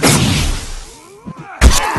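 Blows land with sharp thuds in a fight.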